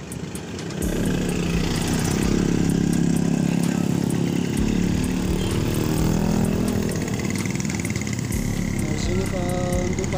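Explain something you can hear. Bus engines idle with a low rumble.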